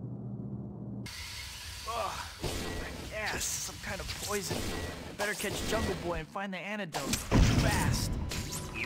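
Game sound effects whoosh and thud as a character leaps and swings.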